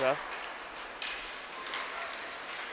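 A hockey stick slaps a puck.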